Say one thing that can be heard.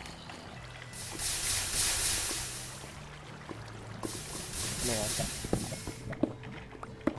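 Water pours and splashes loudly.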